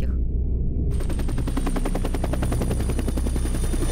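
A helicopter engine drones steadily close by.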